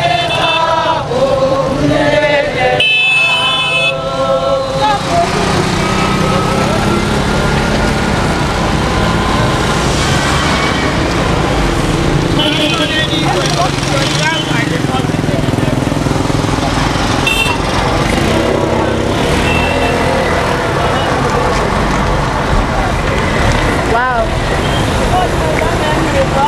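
A crowd of people murmurs and chatters outdoors.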